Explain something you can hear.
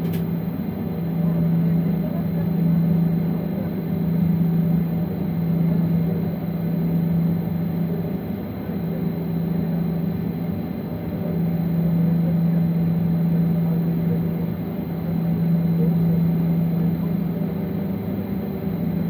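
An aircraft's engines hum steadily, heard from inside the cabin.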